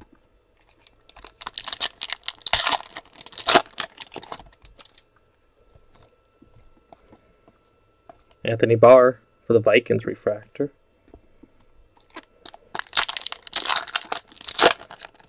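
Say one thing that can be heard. A foil wrapper crinkles and tears as hands rip open a pack.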